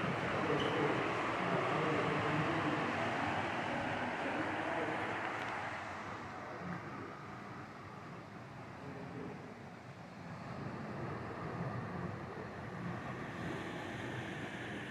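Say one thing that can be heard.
Surf washes over rocks far below.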